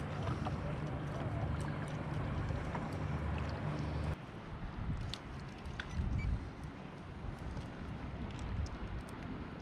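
Small waves lap gently against a kayak.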